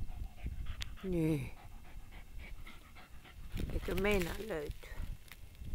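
A dog whines briefly in short, wavering cries.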